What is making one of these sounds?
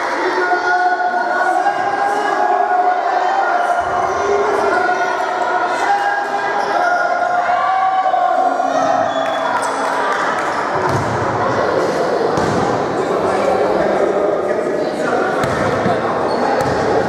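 Sneakers squeak on a hard floor in a large echoing hall.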